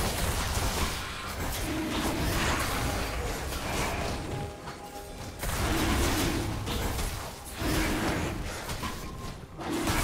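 A large winged creature roars and snarls.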